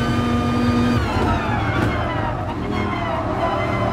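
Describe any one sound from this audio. A racing car engine drops in pitch as the driver downshifts and brakes.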